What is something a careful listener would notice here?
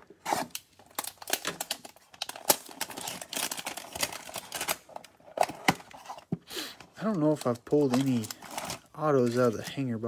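Cardboard boxes scrape and tap as they are handled.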